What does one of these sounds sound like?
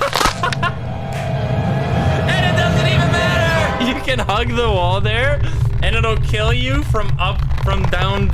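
A young man laughs and shouts loudly.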